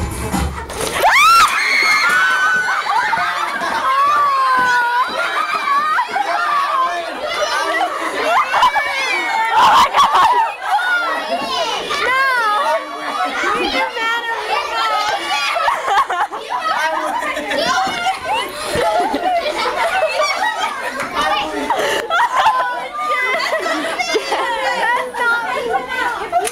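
A crowd of teenagers shrieks and screams indoors.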